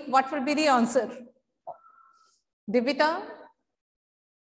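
A woman speaks calmly and clearly into a close microphone.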